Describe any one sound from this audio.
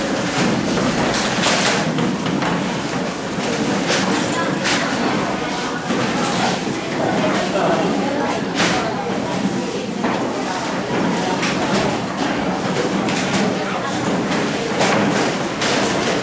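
Several men talk loudly over one another close by.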